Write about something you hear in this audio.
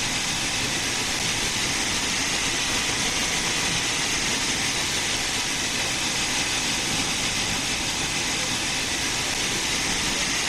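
Steam hisses steadily from a locomotive.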